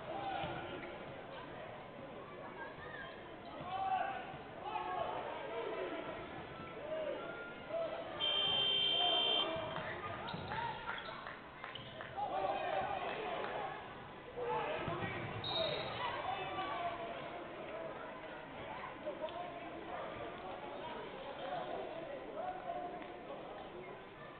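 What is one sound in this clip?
A crowd murmurs and cheers in the stands.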